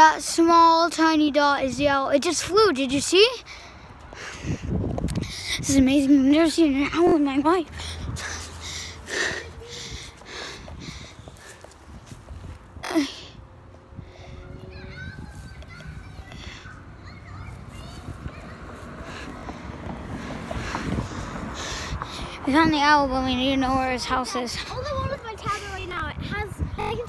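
A young boy talks loudly with animation, close by.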